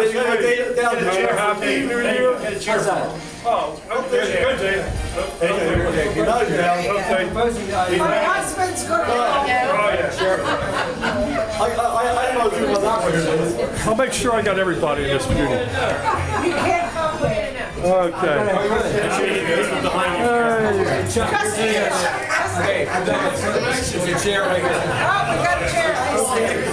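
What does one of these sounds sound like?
A large group of men and women sings together loudly at close range.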